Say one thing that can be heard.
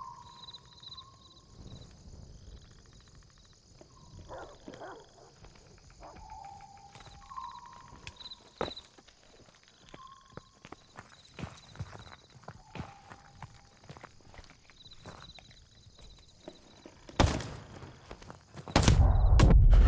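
A fire crackles and pops nearby.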